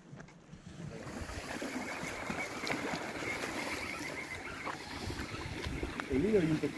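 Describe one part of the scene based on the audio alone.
Water laps gently against a shore outdoors.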